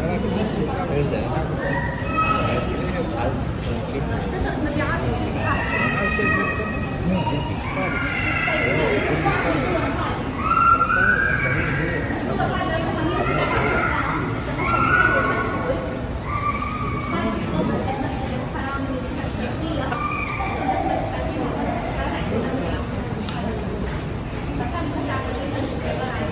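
A crowd of people chatters in a busy, echoing hall.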